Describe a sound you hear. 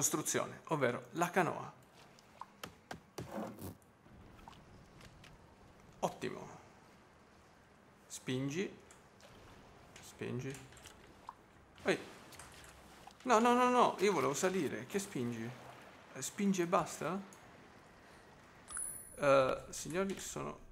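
Water splashes softly underfoot while wading through shallow waves.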